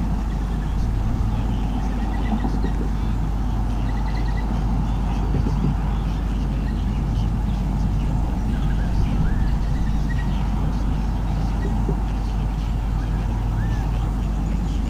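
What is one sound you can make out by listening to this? Young birds chirp softly in a nest.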